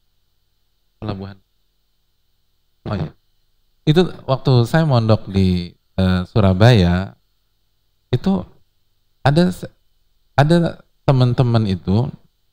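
A man speaks with animation into a headset microphone, with pauses.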